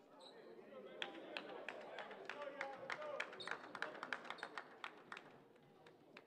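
Basketball shoes squeak sharply on a hardwood floor.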